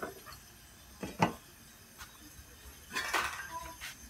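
A metal lid clanks as it is lifted off a pot.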